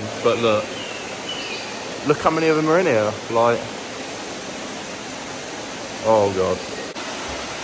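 A young man talks calmly close to the microphone.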